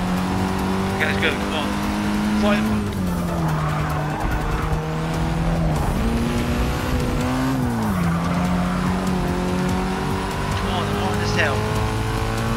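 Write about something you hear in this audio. Tyres squeal briefly through corners.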